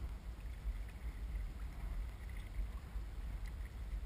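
A kayak paddle dips and splashes in the water.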